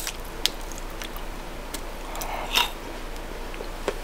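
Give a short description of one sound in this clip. Teeth snap a piece off a chocolate bar.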